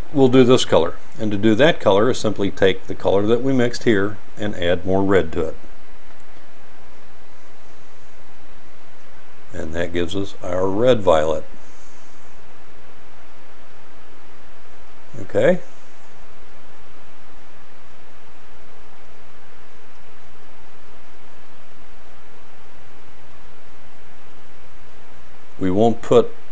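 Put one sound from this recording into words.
A paintbrush brushes softly on paper.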